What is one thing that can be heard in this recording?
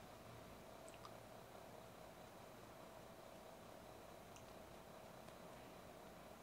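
A makeup brush brushes softly against skin.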